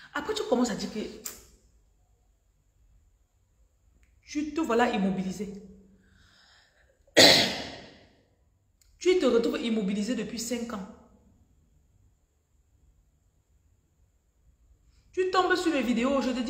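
A young woman speaks close by with animation, in short bursts with pauses.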